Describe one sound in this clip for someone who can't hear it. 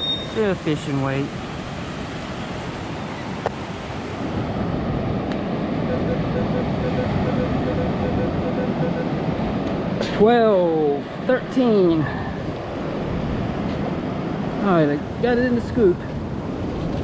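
A metal detector gives warbling target tones.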